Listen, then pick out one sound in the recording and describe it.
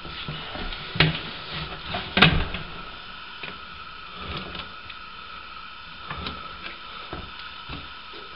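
A gloved hand knocks and rubs against a plastic drain pipe.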